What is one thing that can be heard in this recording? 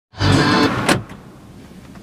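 A car engine cranks and starts.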